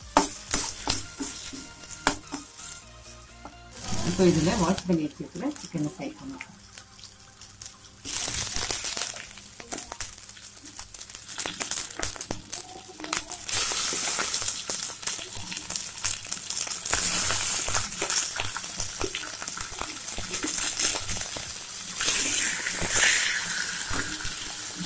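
Food sizzles and crackles in a hot pan.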